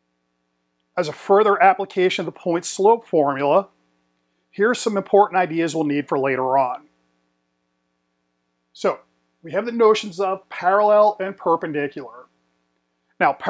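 A middle-aged man speaks clearly and with animation into a close microphone.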